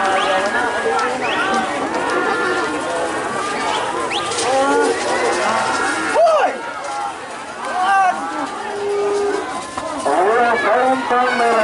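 A crowd of men shouts and cheers loudly outdoors.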